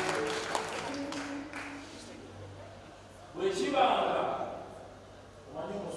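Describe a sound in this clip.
A young man sings into a microphone over a loudspeaker, in a large echoing hall.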